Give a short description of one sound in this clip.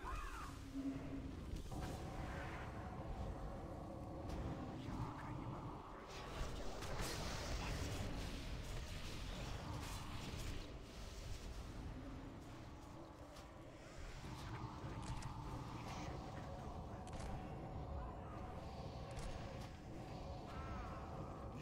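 Spell effects crackle and boom in a game battle.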